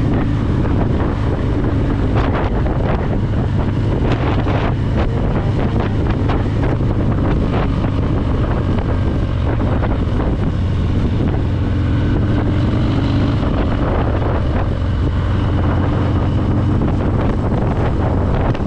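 A car passes by in the opposite direction.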